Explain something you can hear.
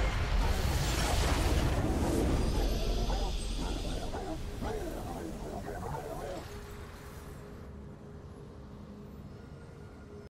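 A deep booming blast of a game's victory sound swells and slowly fades away.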